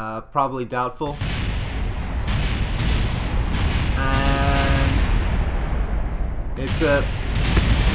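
A rocket engine roars and sputters.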